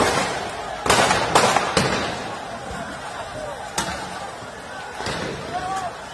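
Tear gas launchers bang sharply several times.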